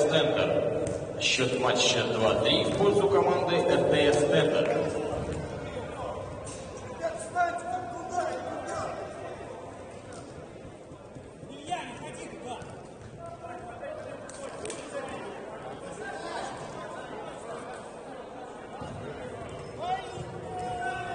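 Men shout to each other in a room with a slight echo.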